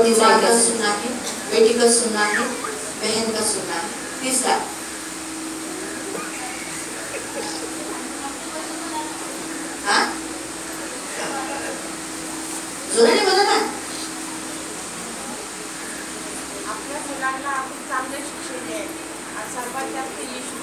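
A middle-aged woman speaks with feeling into a microphone through a loudspeaker in an echoing room.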